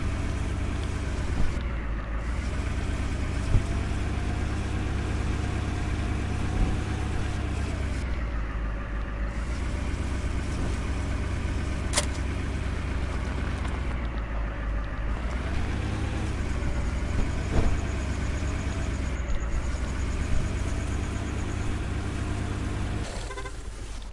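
A tractor engine drones steadily, rising and falling in pitch as it drives.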